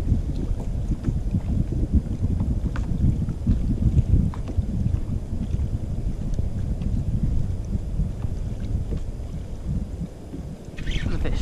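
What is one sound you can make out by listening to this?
A fishing reel clicks and whirs as the line is reeled in.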